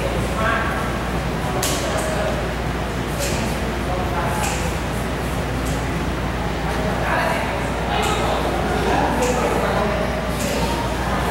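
Shoes step and scuff on a hard floor in a steady dance rhythm.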